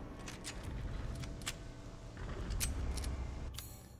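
A gun is reloaded with sharp metallic clicks.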